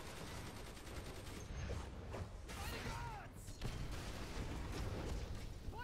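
Punches and blasts thud and crackle in a fast fight.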